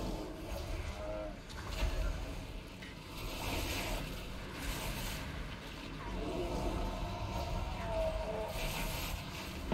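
Electric magic crackles and zaps in bursts.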